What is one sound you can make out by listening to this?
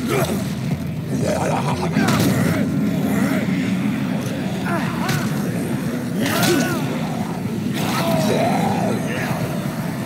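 Zombies groan and moan all around.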